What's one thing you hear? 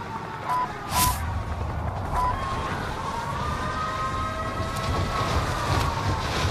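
Wind rushes loudly during a fast fall.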